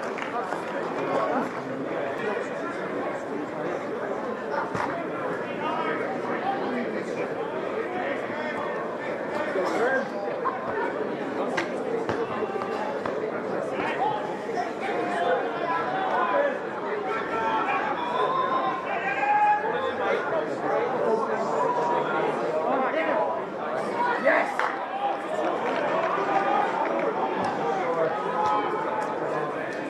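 Young women shout to each other outdoors, some way off.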